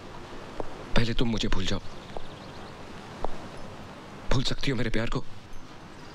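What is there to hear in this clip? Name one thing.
A man speaks quietly and calmly nearby.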